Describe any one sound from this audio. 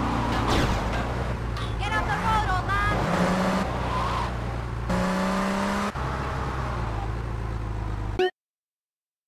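A car engine hums steadily and revs as the car drives.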